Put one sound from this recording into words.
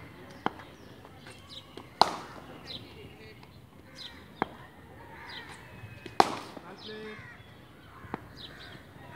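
A ball bounces on hard ground with a short knock.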